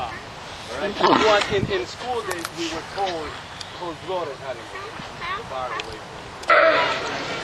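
A sea lion barks and groans nearby.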